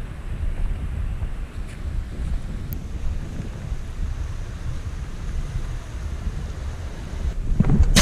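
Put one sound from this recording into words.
Waves wash and splash against rocks nearby.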